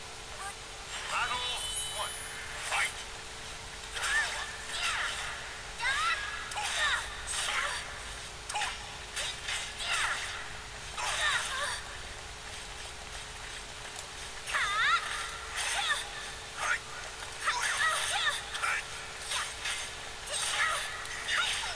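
Swords clash and swish in quick, sharp strikes.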